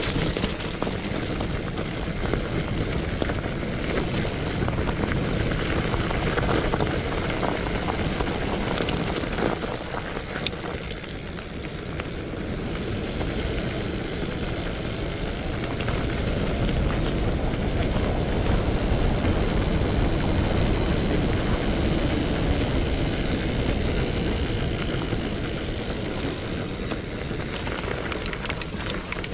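Bicycle tyres crunch and rumble over a gravel track.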